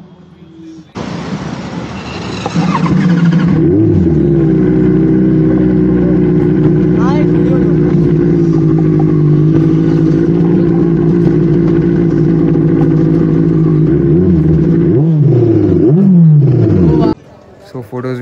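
A motorcycle engine hums steadily and revs.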